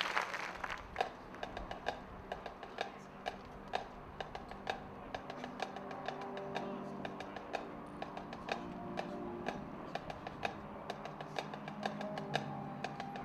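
A marching band's drums tap out a steady beat.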